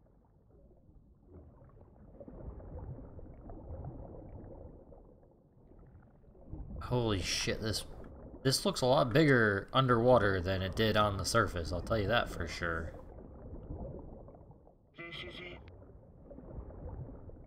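Water swishes and gurgles as a swimmer strokes underwater.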